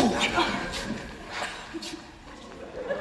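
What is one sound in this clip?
An actor speaks on a stage in a large hall.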